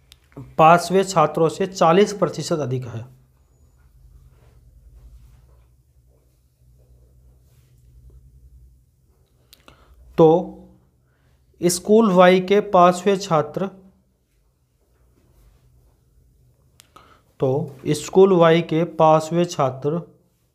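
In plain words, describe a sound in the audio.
A man speaks clearly and steadily into a close microphone, in short bursts with pauses.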